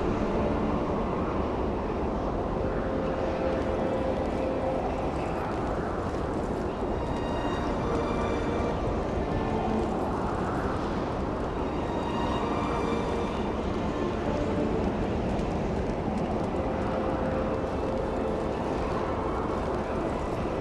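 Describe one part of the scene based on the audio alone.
Wind howls steadily through a snowstorm.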